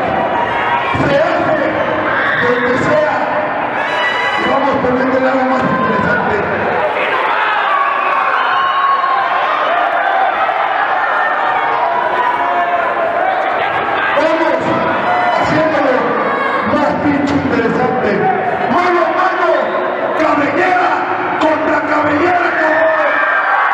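A crowd murmurs and shouts in an indoor arena.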